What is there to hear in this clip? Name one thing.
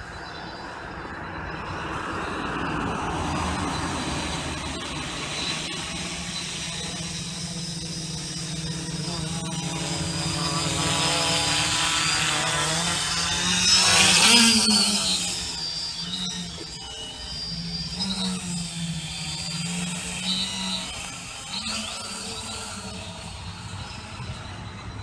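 A drone's rotors buzz overhead, growing louder as the drone comes closer and then fading as it climbs away.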